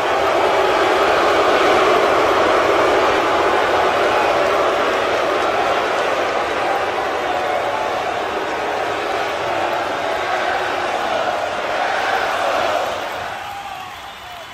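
A large crowd cheers and roars loudly, then fades.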